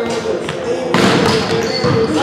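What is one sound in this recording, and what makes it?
A volleyball is slapped hard by a serving hand.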